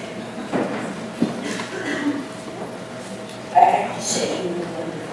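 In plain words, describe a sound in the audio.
People murmur in a large echoing hall.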